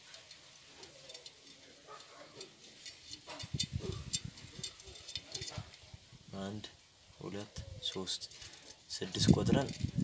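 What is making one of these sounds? Metal bicycle spokes click and tick as hands turn them on a wheel.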